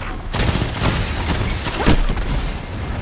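Gunshots fire in rapid bursts with loud blasts.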